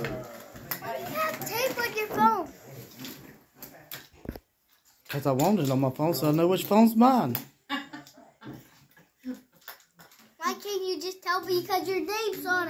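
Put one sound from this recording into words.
A young boy talks excitedly and close by, in a high voice.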